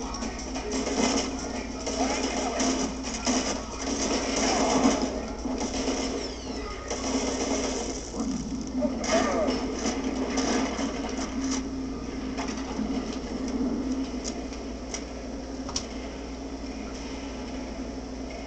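Gunfire and explosions from a video game crackle through a small speaker.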